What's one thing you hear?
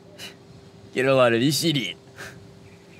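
A man exclaims loudly and with animation, close by.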